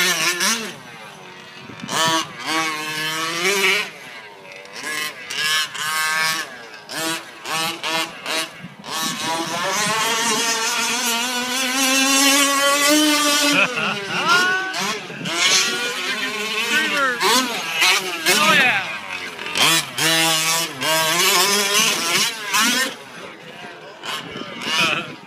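A two-stroke engine on a gas-powered RC truck revs up and down as the truck races.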